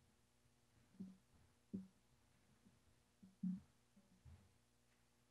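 Footsteps tap softly on a wooden floor.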